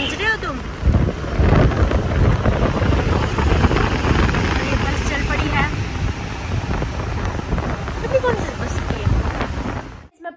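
A bus engine roars close by.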